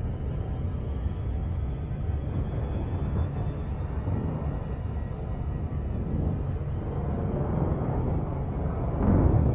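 A spaceship's engine rumbles low and steadily.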